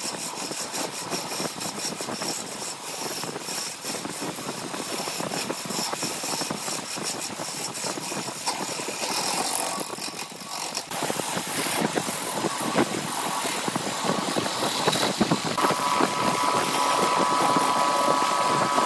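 A lathe gouge scrapes and cuts into spinning wood.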